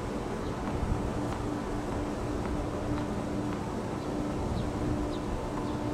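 A tennis ball bounces several times on a hard court.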